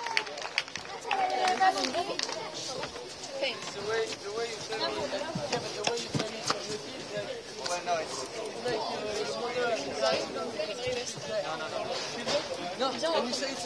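Men talk with each other nearby.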